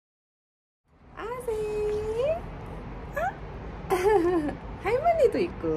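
A woman talks playfully in a high, sing-song voice close by.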